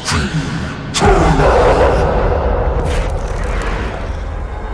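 A beam of energy crashes down with a deep, roaring whoosh.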